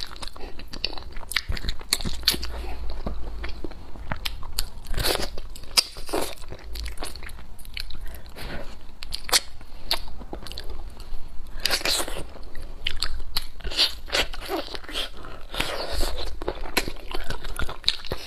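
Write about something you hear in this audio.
Meat tears apart with wet squelching sounds.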